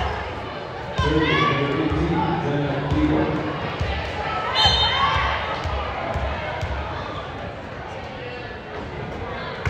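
A crowd of spectators shouts and cheers in an echoing gym.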